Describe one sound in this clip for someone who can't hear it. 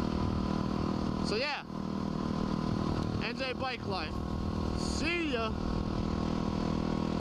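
A motorcycle engine drones steadily and revs up and down.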